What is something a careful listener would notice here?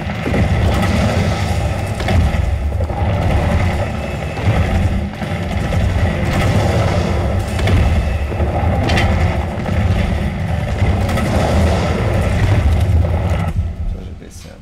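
A grenade explodes with a deep boom.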